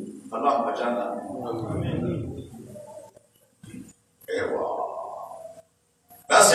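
A middle-aged man speaks calmly and steadily into a microphone.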